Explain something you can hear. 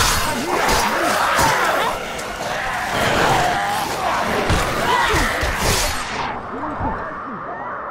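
Heavy blows thud against bodies in a scuffle.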